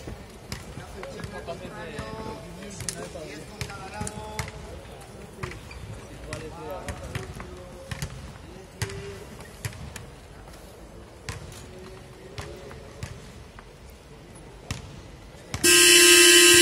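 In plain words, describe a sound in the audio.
Basketballs bounce on a hard court in a large echoing hall.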